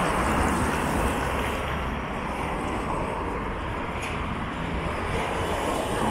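A trolleybus hums as it approaches.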